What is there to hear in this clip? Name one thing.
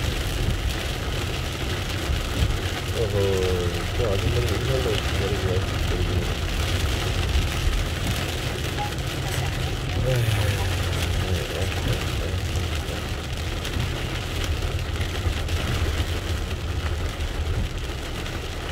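Heavy rain drums steadily on a car's windshield.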